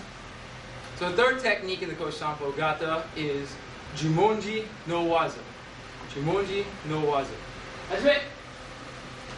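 A man speaks calmly toward the listener.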